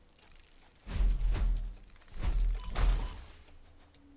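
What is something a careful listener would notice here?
Deep booms thud in short bursts.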